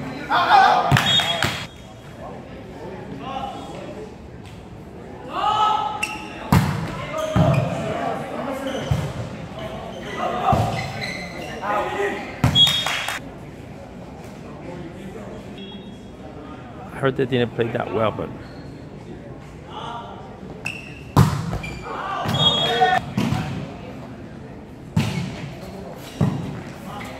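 A volleyball is hit hard, smacking sharply.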